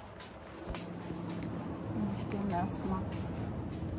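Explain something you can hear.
A plastic package rustles and crinkles in a hand.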